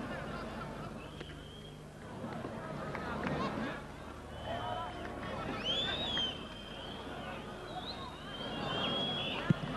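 Spectators whistle shrilly from the stands.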